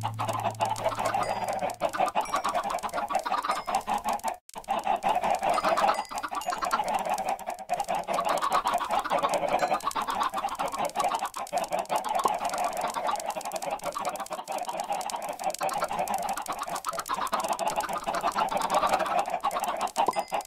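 Many chickens cluck in a dense, constant chorus.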